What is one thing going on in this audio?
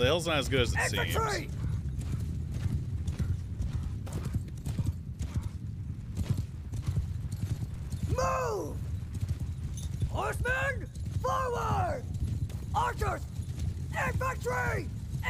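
Horses' hooves rumble across the ground.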